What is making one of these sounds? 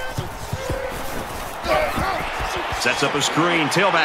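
Football players' pads clash in a tackle.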